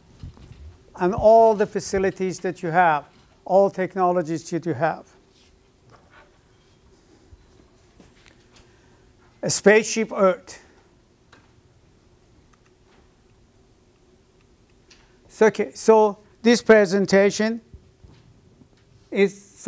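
An elderly man speaks calmly in bursts, with pauses, close to a microphone.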